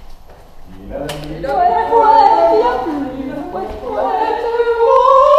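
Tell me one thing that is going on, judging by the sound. A young woman talks and laughs cheerfully close by.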